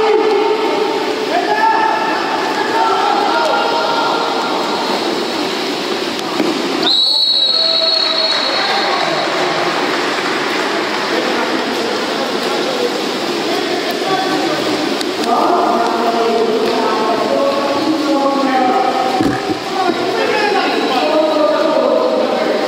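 Water splashes as swimmers churn through a pool.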